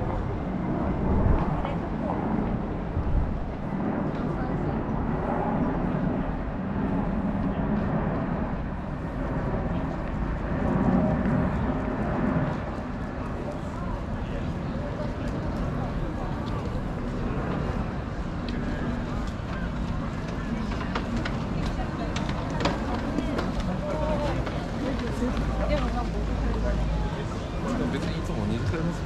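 Many people talk in the distance outdoors, a steady street murmur.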